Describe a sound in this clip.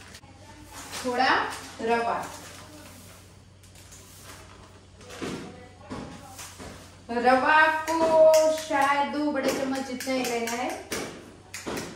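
A woman speaks nearby in a cheerful, lively voice.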